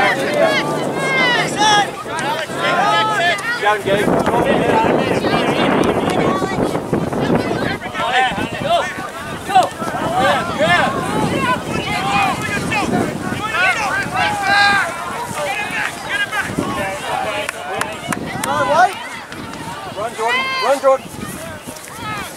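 Spectators outdoors shout and cheer from the sideline.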